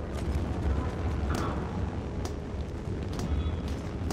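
Metal rungs clank as a ladder is climbed.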